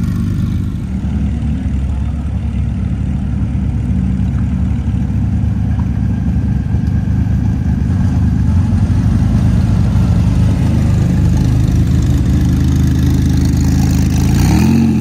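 A second sports car engine idles with a deep rumble as it rolls past close by.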